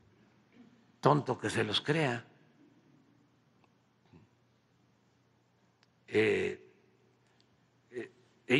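An elderly man speaks slowly through a microphone in a large echoing hall.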